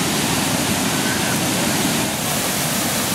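A waterfall roars steadily.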